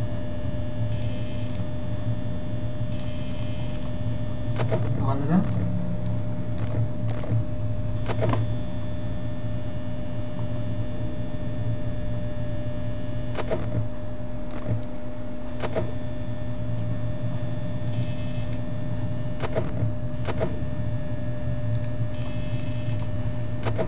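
Static crackles and buzzes briefly now and then.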